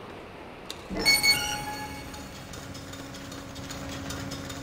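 A heavy wooden gate slides open.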